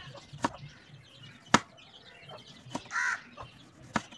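A knife slices through a tomato onto a wooden cutting board.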